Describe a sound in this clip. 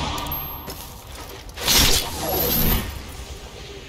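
A magic spell crackles and whooshes loudly.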